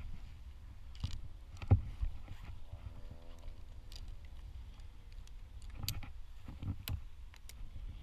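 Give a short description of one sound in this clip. Metal climbing clips clink and rattle against a rope.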